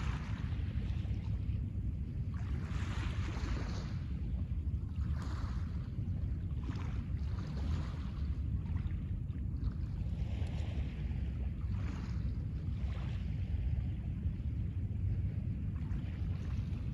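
Small waves wash gently onto a pebble shore.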